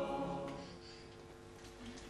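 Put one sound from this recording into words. A choir finishes singing a held chord in a reverberant hall.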